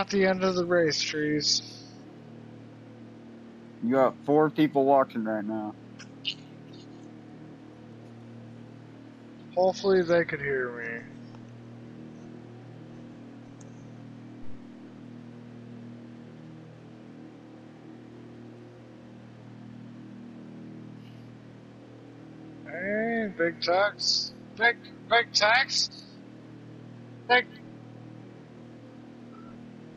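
A racing truck engine drones steadily at high speed.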